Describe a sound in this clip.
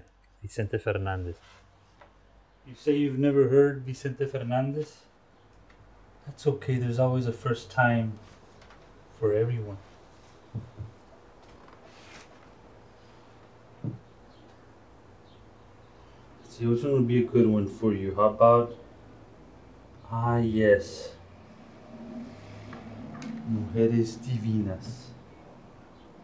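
A man speaks calmly nearby, in short bursts.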